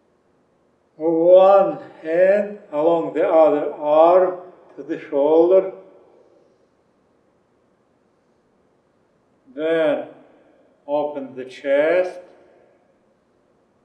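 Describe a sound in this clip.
A man speaks calmly through a microphone, giving instructions.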